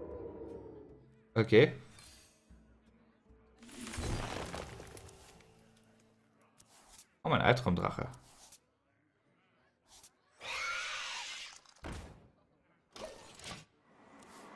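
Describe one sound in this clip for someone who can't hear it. Game cards whoosh and chime as they are played.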